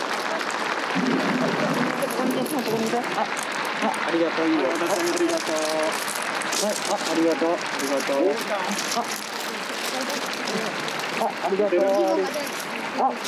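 Young children talk and chatter close by.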